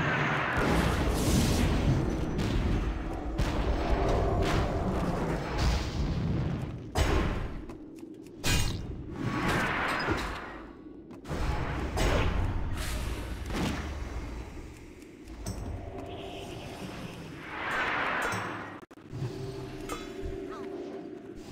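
Sword blows and spell effects clash in a game fight.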